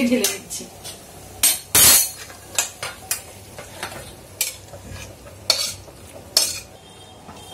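A metal spoon clinks and scrapes against a metal pan.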